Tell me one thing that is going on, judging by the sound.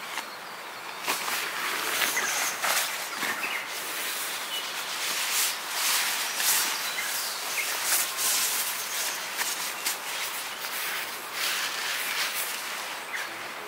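A person rustles through a bag and a nylon jacket close by.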